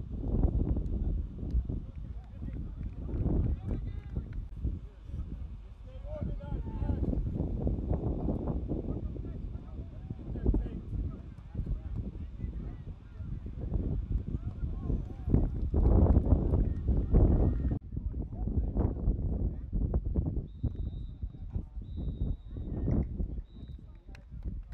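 Wind blusters outdoors across the microphone.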